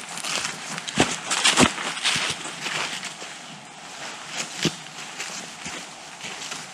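Footsteps crunch through dry leaves close by.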